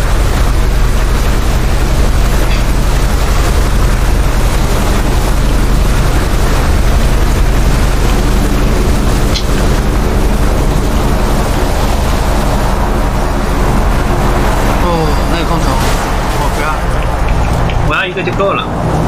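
A motorboat engine roars steadily.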